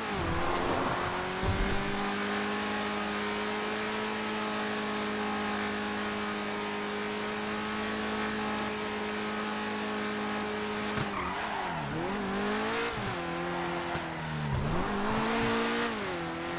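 A sports car engine roars at a steady pitch, then revs up and down.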